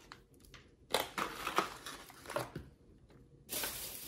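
A plastic food tray crinkles and rustles close by.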